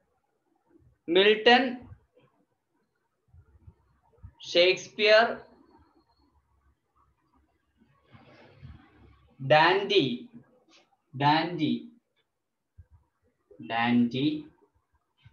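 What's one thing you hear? A man speaks calmly in short phrases close by, with pauses between them.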